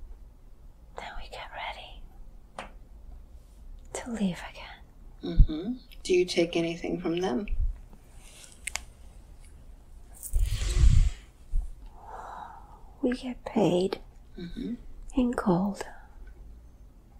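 An elderly woman speaks weakly and hoarsely, close by.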